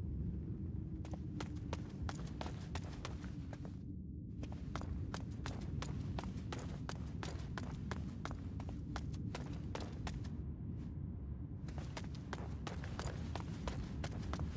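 Footsteps tread steadily on a hard stone floor.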